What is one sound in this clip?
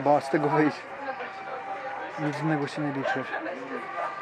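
A young man speaks close by, casually.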